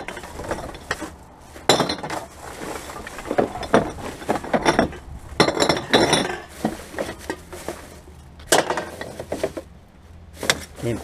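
Plastic bottles and cans clatter against each other.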